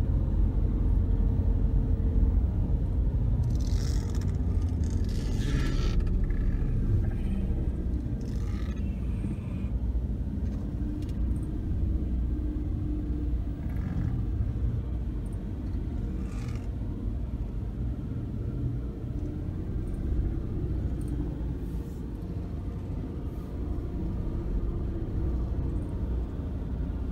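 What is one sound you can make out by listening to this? A car engine hums steadily at low speed from inside the car.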